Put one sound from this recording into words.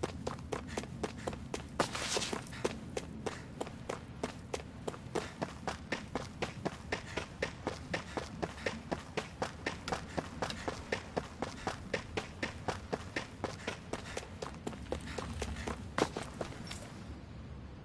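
Footsteps run quickly and steadily over stone.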